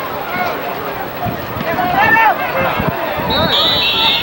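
Football players in pads collide and thud together in a tackle.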